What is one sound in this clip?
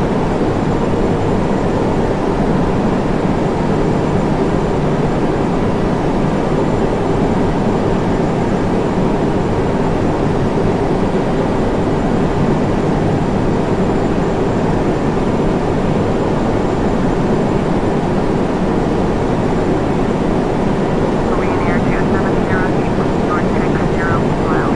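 Jet engines roar steadily in a cockpit.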